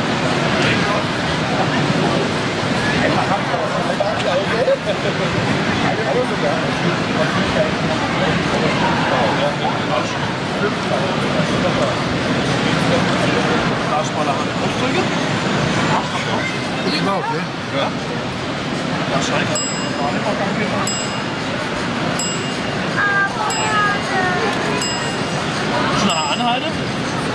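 A small model train hums and clatters along its track.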